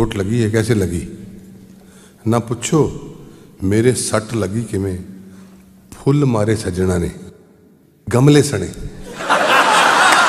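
A middle-aged man sings through a microphone in drawn-out phrases.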